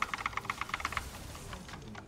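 Rapid clashing combat sound effects ring out from a video game.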